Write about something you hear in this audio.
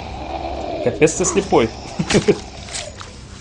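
A knife stabs into flesh with wet thuds.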